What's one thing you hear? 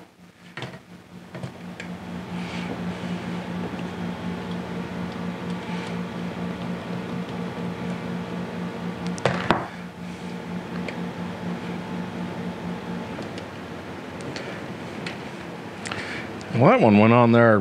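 Small plastic parts click and snap as wires are fitted into connectors.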